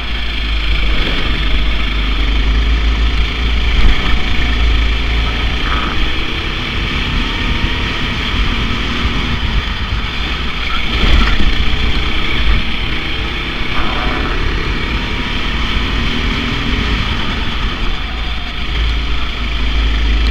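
A small kart engine buzzes loudly close by.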